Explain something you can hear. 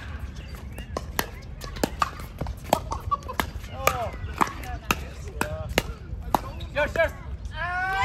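Paddles hit a plastic ball with sharp hollow pops in a quick rally.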